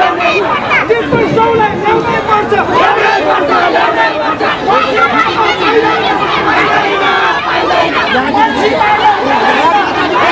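A man argues angrily, close by.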